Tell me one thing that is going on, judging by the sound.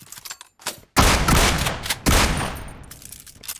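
Rapid gunshots ring out at close range.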